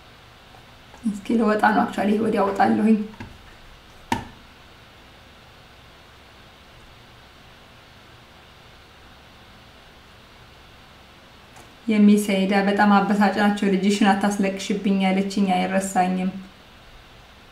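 A young woman speaks calmly and close to the microphone, with long pauses.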